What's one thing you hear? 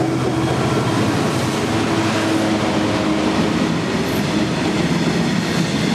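Freight wagons clatter loudly over the rails as they rush past.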